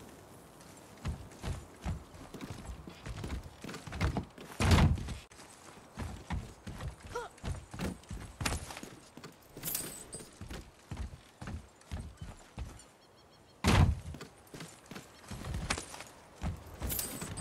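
Footsteps thud on wooden planks and rock.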